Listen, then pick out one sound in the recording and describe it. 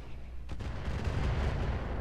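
A blast bursts with a crackling roar.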